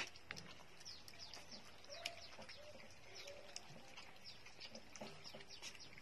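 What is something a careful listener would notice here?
Puppies lap and slurp milk.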